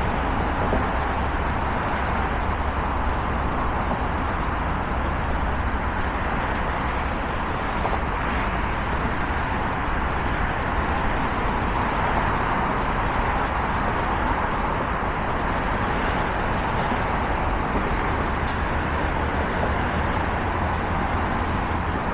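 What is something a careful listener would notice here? Traffic roars steadily on a busy highway below.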